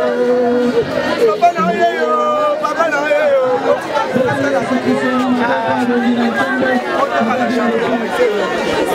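A man speaks close to a microphone in a tearful, pleading voice.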